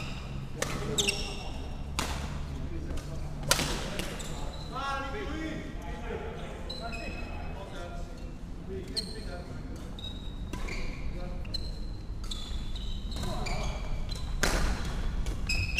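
Sports shoes squeak on a wooden floor.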